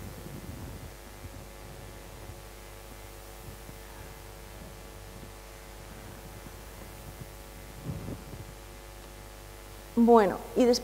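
A woman speaks calmly into a microphone in a large room.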